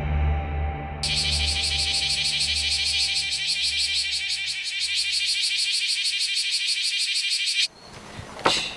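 A cicada buzzes.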